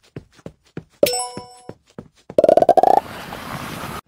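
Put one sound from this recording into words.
A bright chime rings out from a game.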